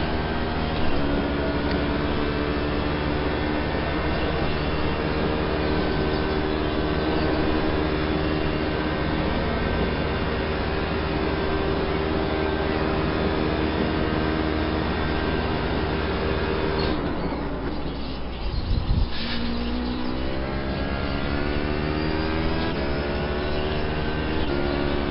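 A racing car engine roars loudly through speakers, dropping in pitch as it slows and rising again as it speeds up.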